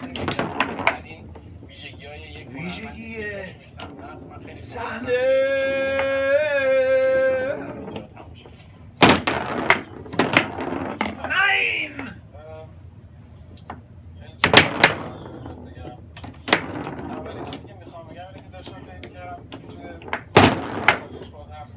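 A small ball clacks sharply against the players and walls of a table football game.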